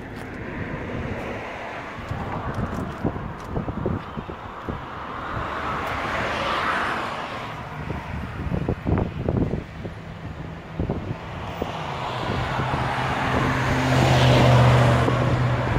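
Wind gusts outdoors, rushing and swelling.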